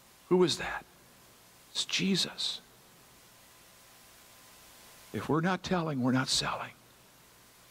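An elderly man speaks calmly through a microphone, with pauses between phrases.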